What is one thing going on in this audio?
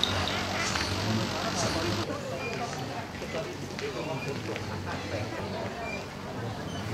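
Men and women chat casually nearby, outdoors.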